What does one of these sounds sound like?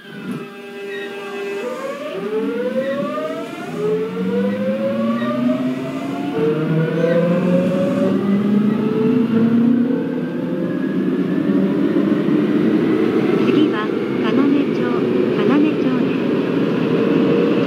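An electric train's motor whines, rising steadily in pitch as the train pulls away.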